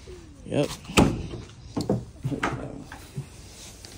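Hard plastic knocks and rattles as a truck bed cover is handled.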